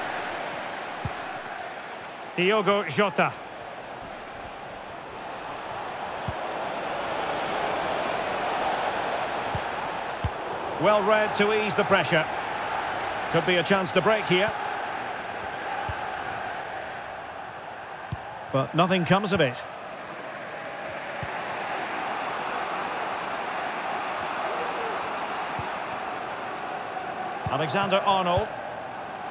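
A large crowd murmurs and cheers steadily in a stadium, swelling and easing.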